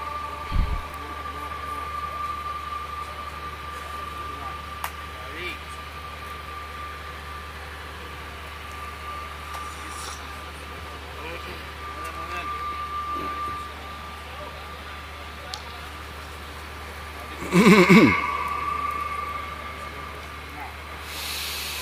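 An elderly man chants into a microphone, heard over loudspeakers.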